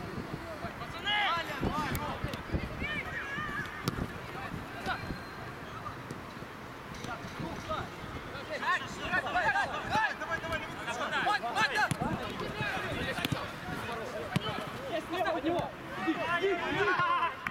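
Young men shout to each other outdoors across a playing field.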